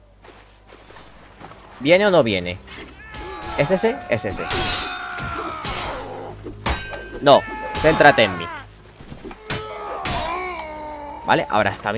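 Swords clash against shields in a close fight.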